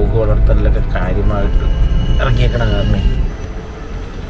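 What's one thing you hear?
A car engine idles low, heard from inside the car.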